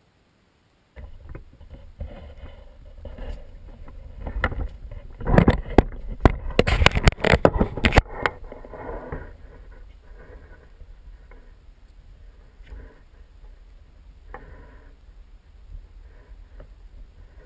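A small fire crackles in a metal bucket.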